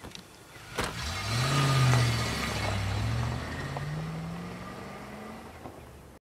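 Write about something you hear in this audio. A car engine starts and revs as the car pulls away, slowly fading into the distance.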